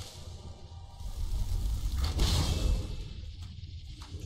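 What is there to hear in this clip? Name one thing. A magical whoosh swells and crackles.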